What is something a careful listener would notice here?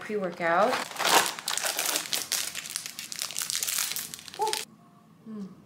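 A snack wrapper crackles as it is torn open.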